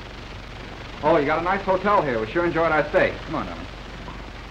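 A man talks.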